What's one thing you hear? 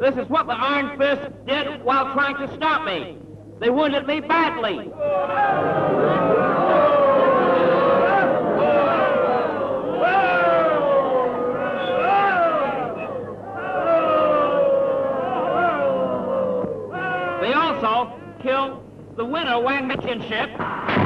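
A man shouts loudly and dramatically.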